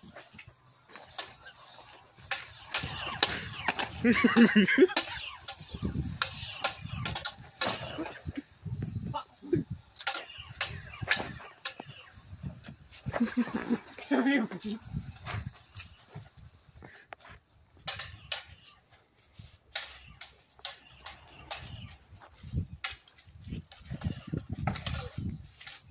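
Plastic toy swords clack together repeatedly.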